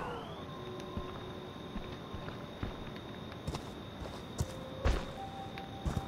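Heavy footsteps crunch over forest ground.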